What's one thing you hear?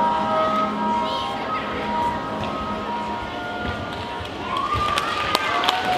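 Music plays through loudspeakers in a large hall.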